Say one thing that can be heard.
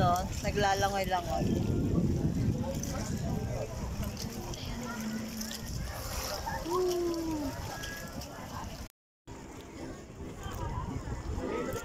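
Water laps gently against a bamboo raft.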